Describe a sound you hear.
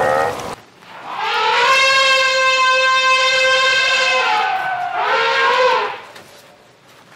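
An elephant trumpets loudly.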